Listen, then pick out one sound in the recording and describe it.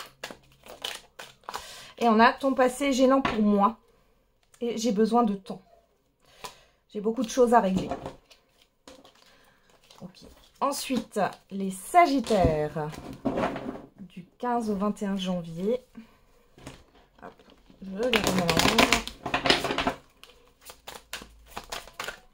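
Playing cards are shuffled and riffled with a quick rustling flutter.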